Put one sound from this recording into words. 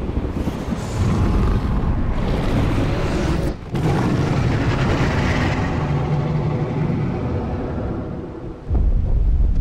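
A huge beast roars with a deep, loud rumble.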